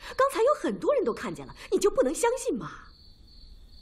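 A middle-aged woman speaks pleadingly, close by.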